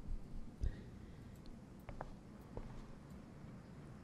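A small plastic box lid clicks open.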